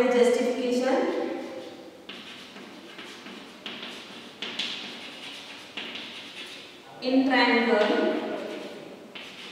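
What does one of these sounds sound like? A woman speaks clearly and calmly, as if teaching.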